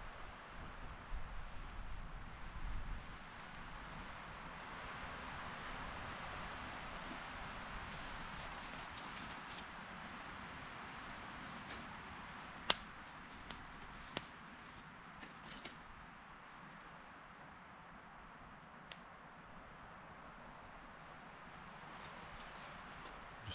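A small wood fire crackles steadily.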